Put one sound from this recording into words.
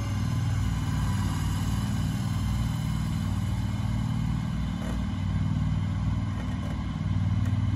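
A remote-controlled shed mover's engine hums under load as the mover pushes a shed along.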